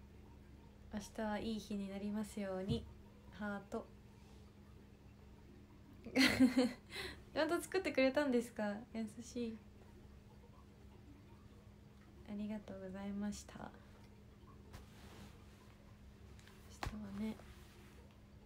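A young woman speaks softly and calmly close to a microphone, with long pauses.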